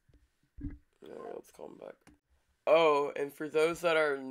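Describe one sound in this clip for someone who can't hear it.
A teenage boy speaks close to a microphone, first softly and then with animation.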